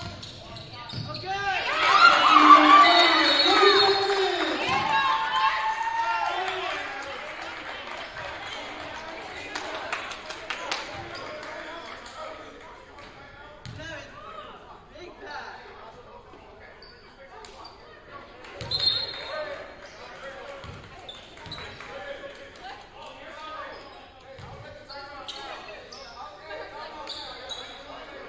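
Basketball players' shoes squeak on a hardwood court.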